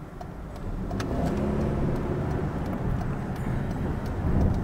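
A car engine hums and rises as the car pulls away.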